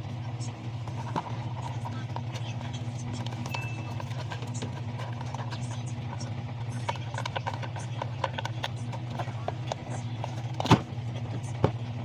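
A plastic wheel knocks and clatters against plastic.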